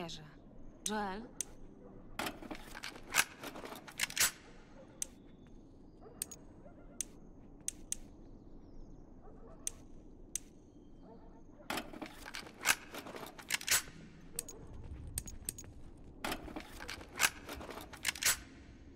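Short soft clicks tick one after another.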